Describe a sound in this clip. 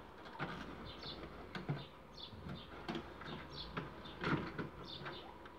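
A videotape slides into a cassette player with a plastic clatter.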